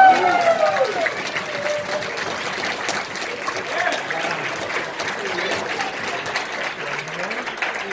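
A man cheers loudly nearby.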